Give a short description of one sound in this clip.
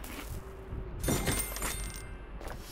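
A bright video game chime rings out as treasure is collected.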